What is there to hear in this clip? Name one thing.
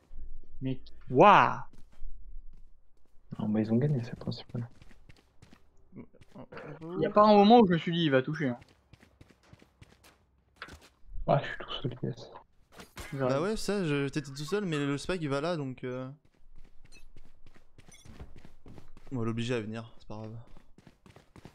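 A young man talks with animation into a nearby microphone.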